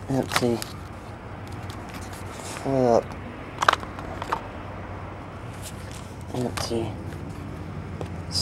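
Trading cards slide and click against each other as hands handle them.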